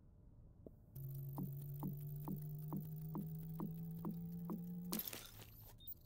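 A game's crafting effect hums steadily, with a rising tone and quick, even ticks.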